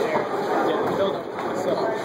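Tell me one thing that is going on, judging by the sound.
A bowling ball clunks against others in a ball return.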